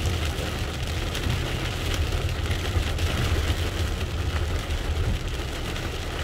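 Windshield wipers swish across the glass.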